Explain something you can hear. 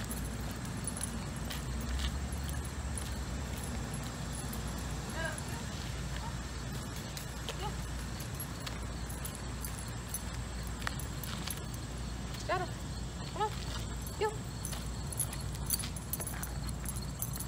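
Footsteps scuff on asphalt outdoors.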